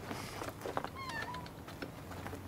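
A puppy whimpers softly.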